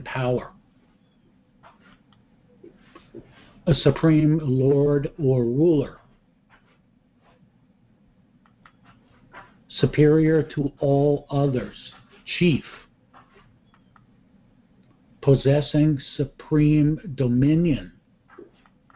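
An elderly man speaks calmly through a microphone, reading out in short phrases with pauses.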